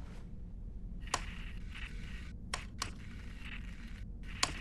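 A robot's motors whir softly.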